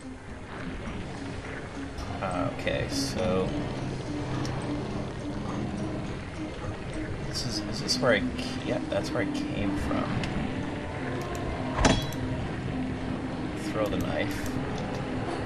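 A man talks casually into a nearby microphone.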